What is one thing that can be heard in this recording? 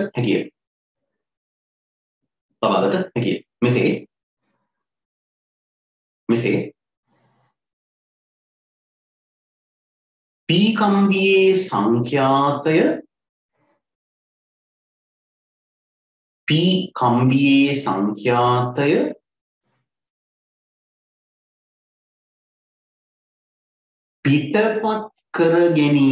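A man speaks calmly into a close microphone, in short bursts with long pauses.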